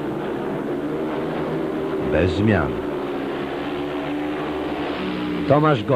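Motorcycle engines roar steadily around a track.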